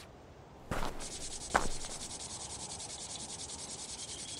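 Lawn sprinklers hiss as they spray water in quick, even pulses.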